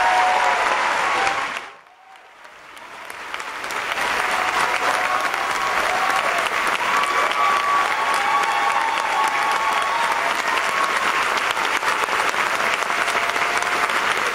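A large crowd applauds in a big echoing tent.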